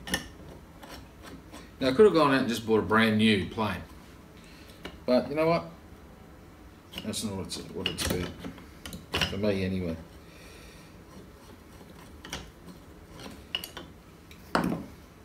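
Metal parts of a hand plane click and clink as they are fitted together.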